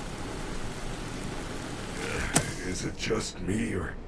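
An aerosol spray hisses in short bursts.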